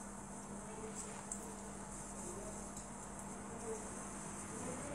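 Metal bracelets clink softly on a moving wrist.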